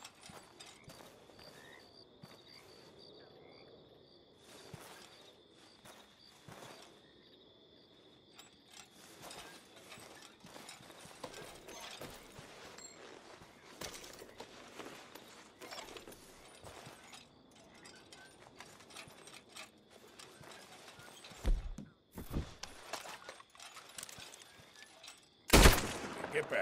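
Footsteps rustle and shuffle through straw on a wooden floor.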